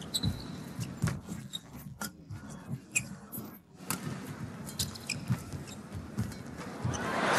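A shuttlecock is struck sharply back and forth by rackets.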